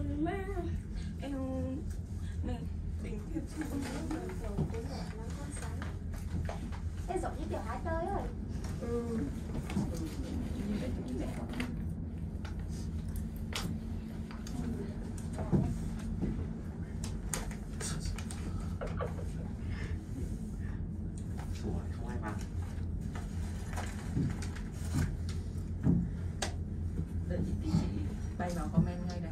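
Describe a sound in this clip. A cable car hums low and steadily as it travels along its cables.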